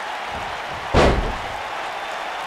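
A wrestler slams hard onto a ring mat with a loud thud.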